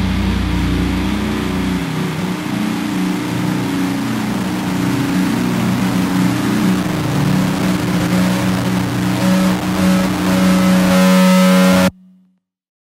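A heavy rock band plays loudly.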